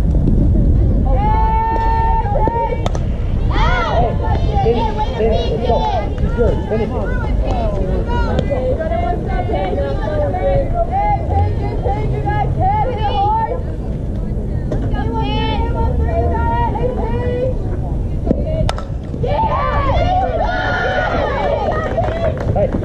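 Young girls chant and cheer loudly nearby.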